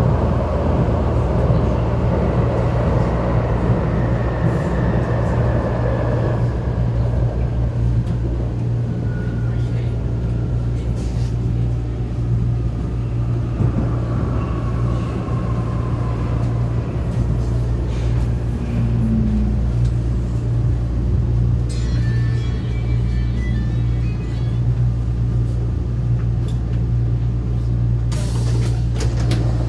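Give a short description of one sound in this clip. A metro train rumbles and rattles steadily along the tracks.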